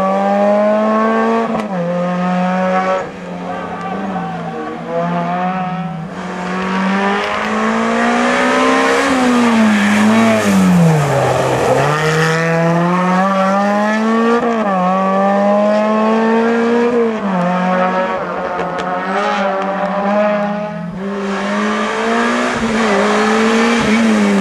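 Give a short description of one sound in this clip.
A rally car engine revs hard, rising and falling through gear changes.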